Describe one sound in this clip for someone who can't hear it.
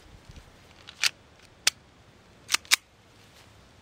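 A handgun clicks as it is handled.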